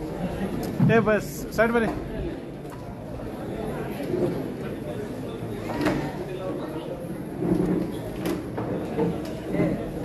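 A crowd of people murmur and talk nearby.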